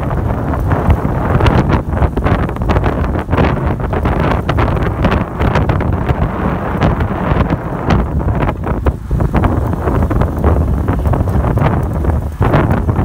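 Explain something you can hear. Bicycle tyres hum steadily on asphalt.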